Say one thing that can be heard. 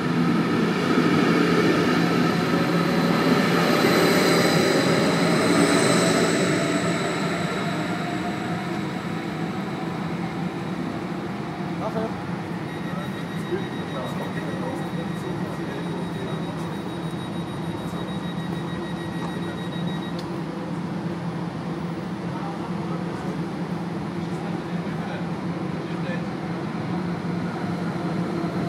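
An electric train idles with a steady low hum.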